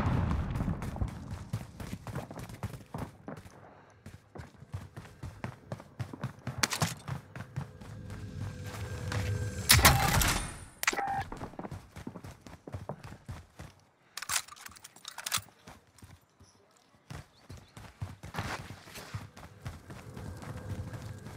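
Footsteps tap quickly on a hard stone floor.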